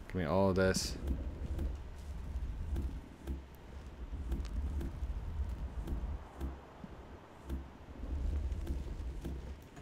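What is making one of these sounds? Wood is chopped with rhythmic knocks.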